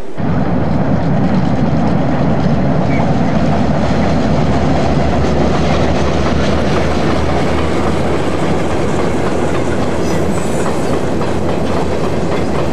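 A diesel train rumbles steadily across a bridge in the distance.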